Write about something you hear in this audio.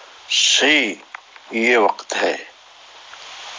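A man calls out in short, lively bursts close by.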